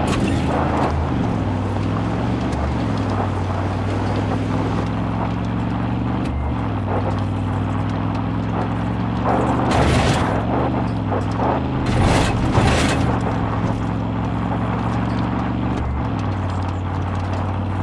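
A car engine hums steadily, changing pitch with the speed.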